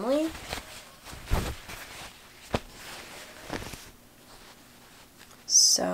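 Fabric rustles softly as a hand handles it.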